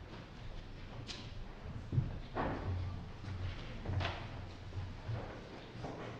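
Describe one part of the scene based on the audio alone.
Footsteps shuffle softly.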